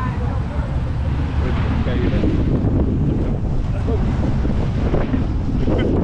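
Wind rushes loudly against a microphone outdoors.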